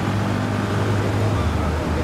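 Traffic drives past on a busy street.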